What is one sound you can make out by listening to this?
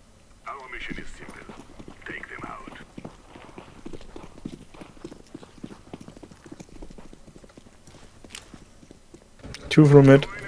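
Footsteps patter quickly on stone as a soldier runs.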